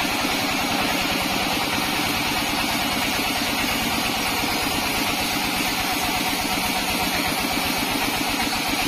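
A sawmill motor drones steadily.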